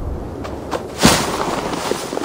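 A heavy thud lands, scattering debris.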